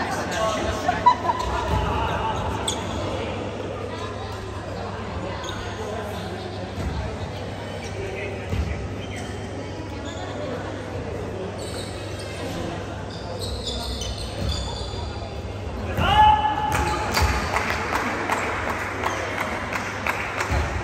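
A volleyball thumps off players' arms.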